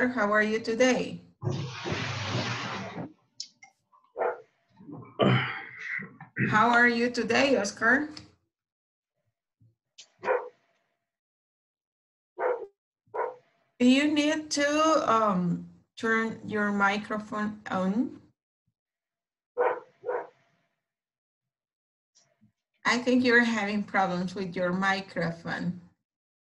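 A woman speaks calmly over an online call, in bursts with pauses.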